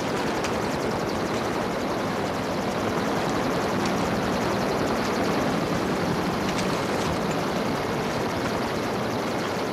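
Footsteps crunch over rough ground.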